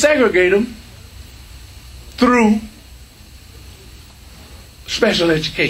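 A middle-aged man speaks calmly into a microphone, in short phrases with pauses.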